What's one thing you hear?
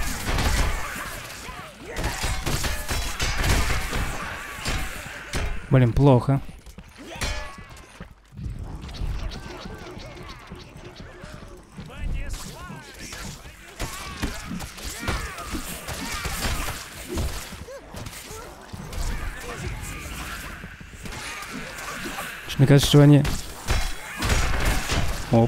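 Blades swing and strike in a fight.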